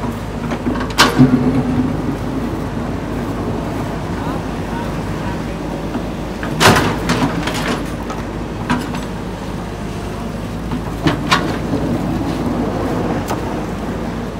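A metal excavator bucket scrapes and knocks against soil and rock.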